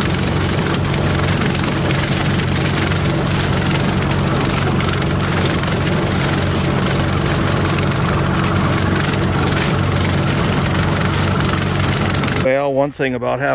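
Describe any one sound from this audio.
A tractor engine drones loudly and steadily.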